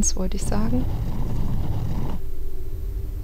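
A heavy stone block grinds and scrapes across a stone floor.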